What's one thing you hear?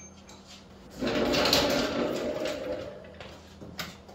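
A wheeled stool rolls noisily across a concrete floor.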